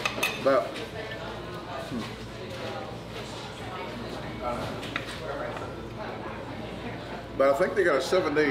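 A knife and fork scrape and clink on a plate.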